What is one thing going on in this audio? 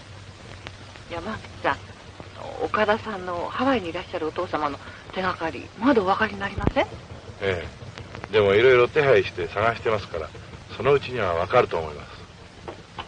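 A woman talks calmly nearby.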